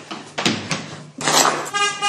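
A woman cries out loudly.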